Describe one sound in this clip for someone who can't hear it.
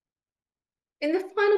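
An elderly woman speaks calmly through an online call.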